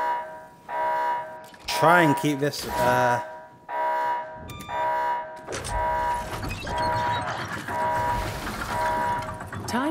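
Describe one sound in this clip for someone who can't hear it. A countdown timer beeps in a steady repeating rhythm.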